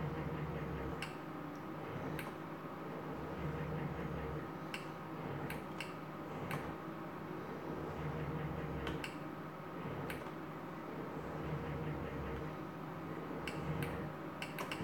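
Slot machine reels click as they stop.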